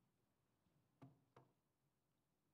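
Two dull knocks sound close to a microphone.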